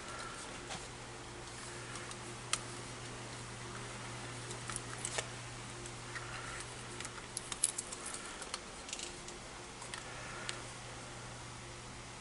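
Small metal parts click and rustle as hands handle them.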